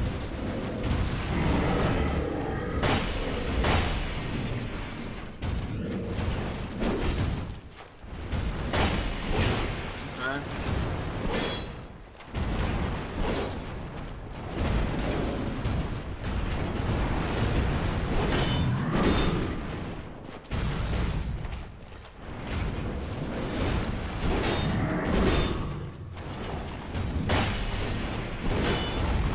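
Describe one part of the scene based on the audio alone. Heavy metal weapons clang and clash in a fierce fight.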